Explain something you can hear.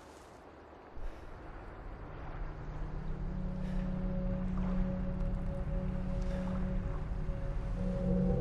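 A small boat's motor hums steadily across the water.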